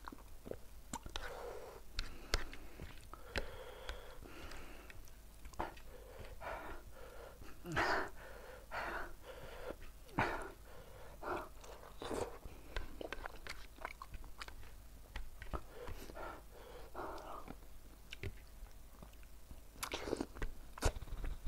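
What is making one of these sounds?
Fingers squelch and click through saucy food.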